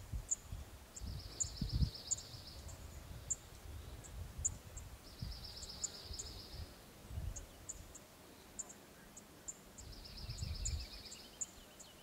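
A small animal gives short, rapid squeaking trills, close by.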